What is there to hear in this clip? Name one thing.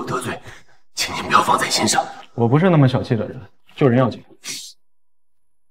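A young man answers calmly, close by.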